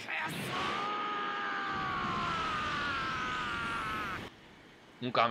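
An energy blast roars and crackles.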